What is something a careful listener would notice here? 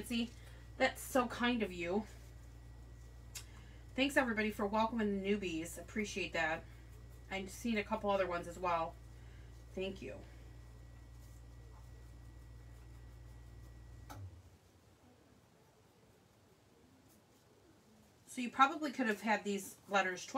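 A middle-aged woman talks calmly and close by, pausing now and then.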